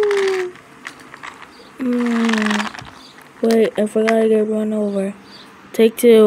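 A toy train rolls along a plastic track.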